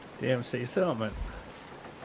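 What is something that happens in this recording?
Waves slosh and wash against the hull of a sailing ship.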